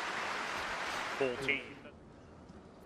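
A crowd applauds in a large hall, then fades.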